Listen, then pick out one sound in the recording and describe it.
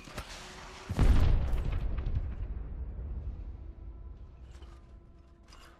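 A heavy landing thumps and rumbles, then fades.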